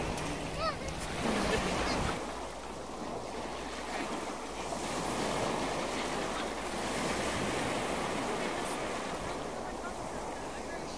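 Small waves lap and splash steadily outdoors.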